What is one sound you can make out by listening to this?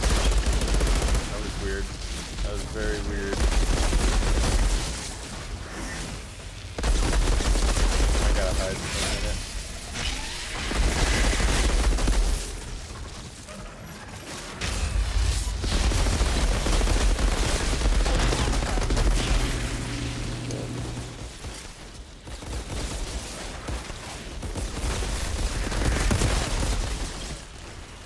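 Heavy booms and blasts thud loudly.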